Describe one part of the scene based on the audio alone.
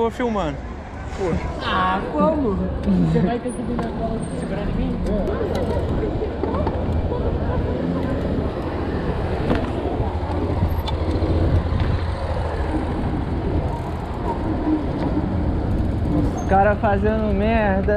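Bicycle tyres roll over asphalt.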